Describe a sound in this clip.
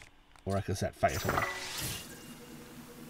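A burst of flame whooshes and crackles.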